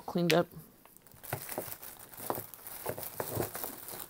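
Wooden stamps clack against each other.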